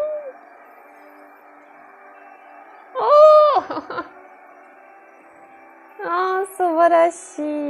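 A young woman sings short phrases close to the microphone.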